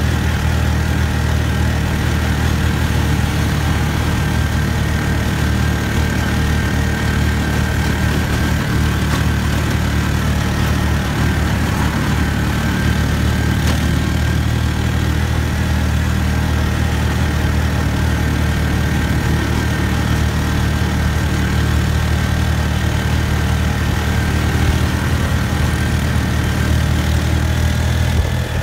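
A vehicle's engine drones steadily from inside as it drives along a road.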